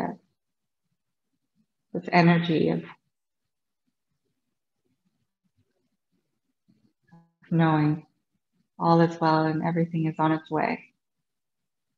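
A woman speaks calmly and softly in short phrases, close to a microphone, with long pauses.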